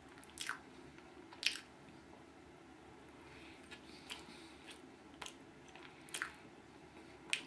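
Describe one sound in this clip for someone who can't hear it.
A man chews and munches food loudly up close.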